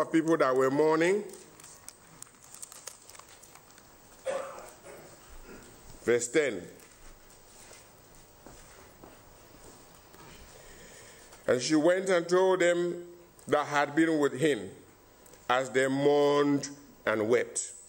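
A man speaks slowly and earnestly into a microphone, with long pauses.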